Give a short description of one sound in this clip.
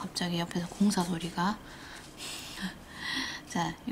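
A brush taps and dabs glitter onto a nail tip.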